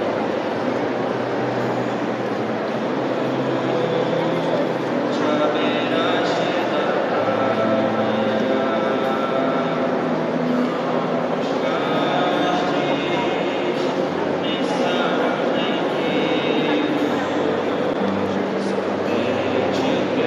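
A large crowd of men and women sings together in a large echoing hall.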